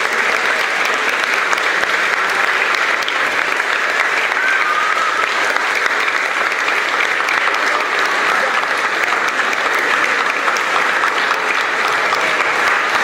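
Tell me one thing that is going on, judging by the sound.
Young men cheer and laugh loudly in an echoing room.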